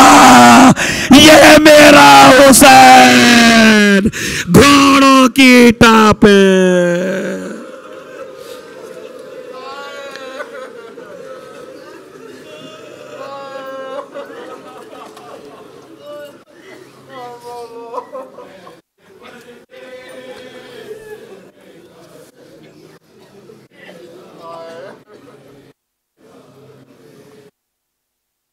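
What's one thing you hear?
A crowd of men chants together loudly, then more quietly.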